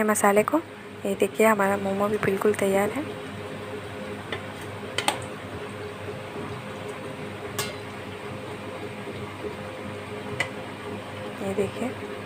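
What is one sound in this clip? A metal spoon clinks against a steel bowl.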